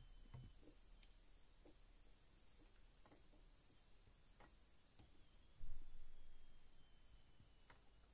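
Small plastic clips click and rattle as test leads are handled.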